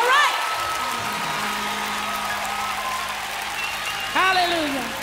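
A woman sings a soaring solo into a microphone.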